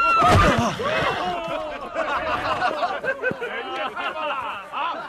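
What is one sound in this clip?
A group of men laugh and cheer nearby.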